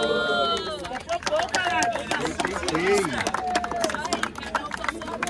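A crowd claps along.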